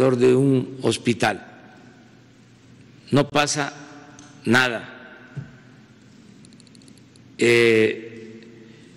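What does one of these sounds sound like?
An elderly man speaks slowly and deliberately into a microphone, with long pauses, in a room with a slight echo.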